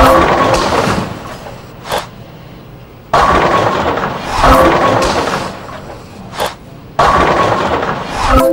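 A bowling ball rumbles down a lane.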